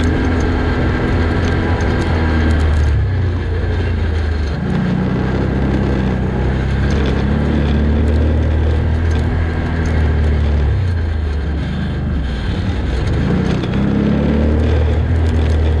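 Tyres crunch and rattle over gravel and stones.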